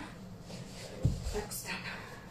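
A body thumps on a wooden floor.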